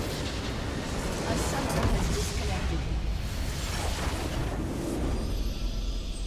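A large crystal shatters and explodes with a loud rumbling blast.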